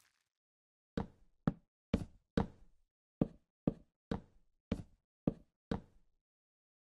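An axe chops at wood with quick, repeated knocks.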